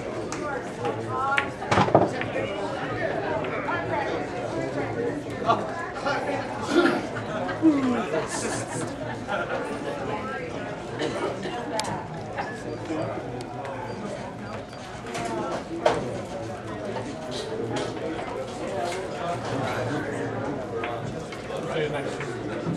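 Many voices chatter in a busy room.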